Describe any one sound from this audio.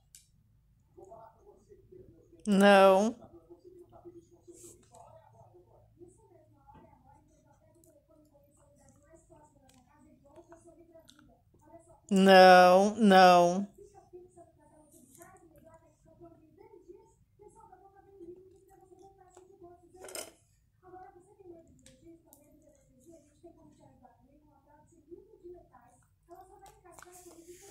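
A dog whines and whimpers softly.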